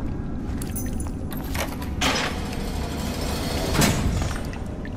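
A metal cell gate clanks and creaks open.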